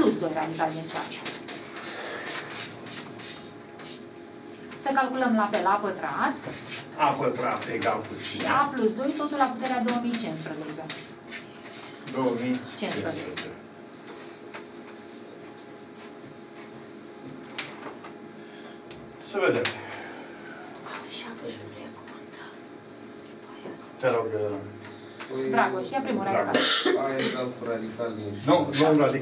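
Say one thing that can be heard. An elderly man lectures in a small echoing room.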